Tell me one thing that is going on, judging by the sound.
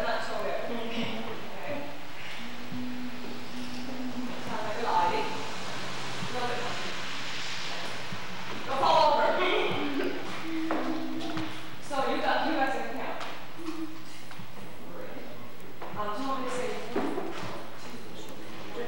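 Young women sing together into microphones.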